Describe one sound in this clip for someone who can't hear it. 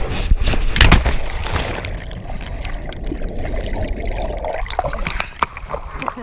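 Water rushes and bubbles underwater.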